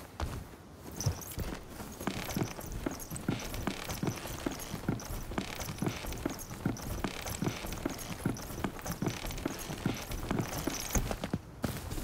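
Feet and hands knock steadily on a wooden ladder while climbing.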